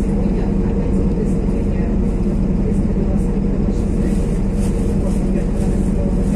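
Steady rain patters on a wet road outdoors.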